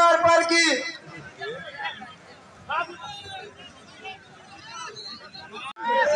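A crowd of men shouts and cheers outdoors.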